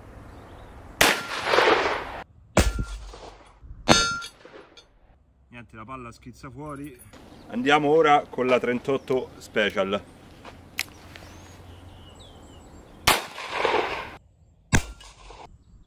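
Loud gunshots crack outdoors and echo away.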